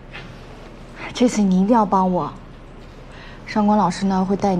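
A second young woman answers calmly close by.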